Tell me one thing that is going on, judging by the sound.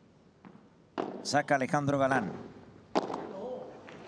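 A padel ball is struck sharply with a paddle.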